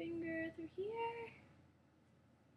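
A young woman sings a few notes close by.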